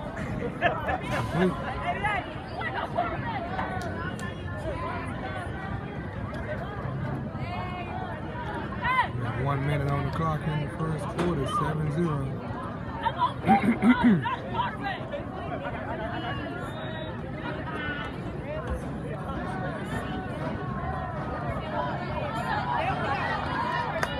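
Men and boys shout and call out nearby, loud and excited.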